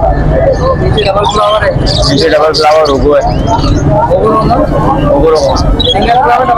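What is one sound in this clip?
Many budgerigars chirp and warble busily close by.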